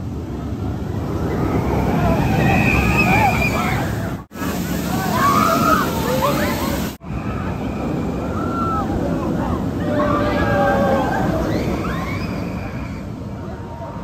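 Riders scream on a roller coaster.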